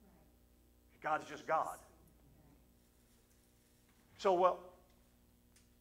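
An older man speaks calmly through a microphone, with long pauses.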